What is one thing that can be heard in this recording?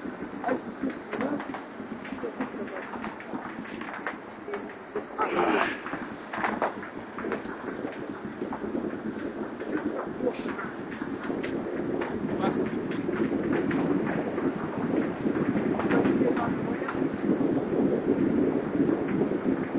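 Several men talk nearby outdoors.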